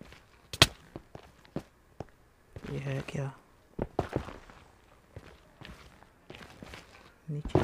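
A pickaxe chips at stone with quick, sharp knocks.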